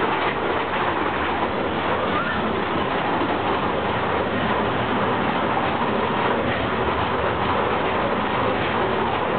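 A group of adults chatters nearby.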